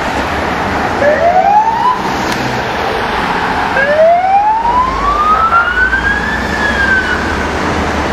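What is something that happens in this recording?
A police siren whoops up in short rising wails.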